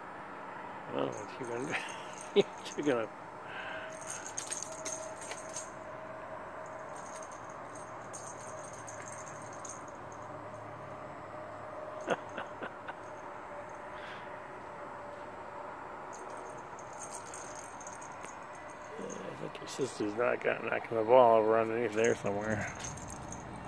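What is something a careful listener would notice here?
A cat yowls and meows nearby.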